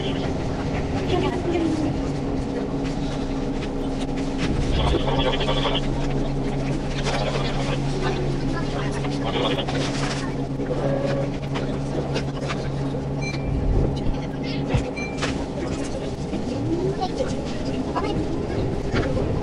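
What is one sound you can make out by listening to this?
A train's motor whines, rising and falling in pitch.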